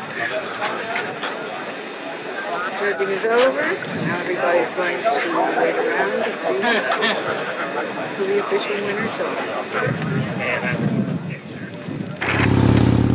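A crowd of men chatter outdoors.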